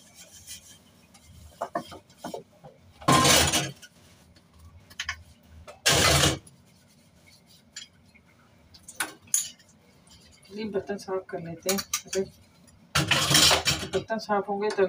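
Dishes clink and clatter in a metal sink.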